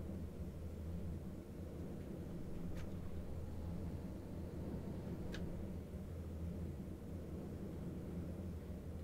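A tram hums and rumbles steadily along its rails.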